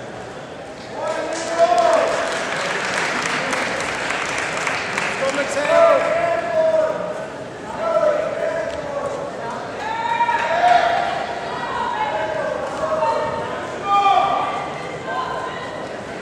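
Men shout loudly from nearby in a large echoing hall.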